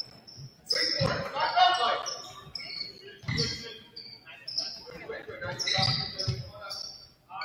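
A basketball thumps as it bounces on the court.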